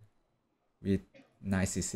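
A chess piece is set down on a wooden board with a soft click.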